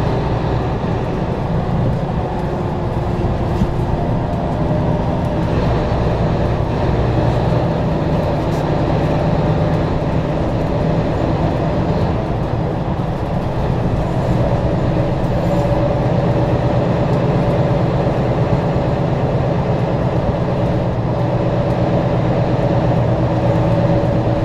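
A vehicle's engine hums steadily from inside the cab as it drives.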